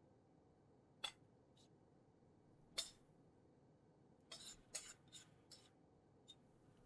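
A spoon scrapes and taps against a ceramic bowl.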